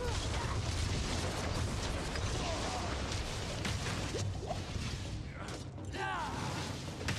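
Spell blasts crackle and rumble in a fight.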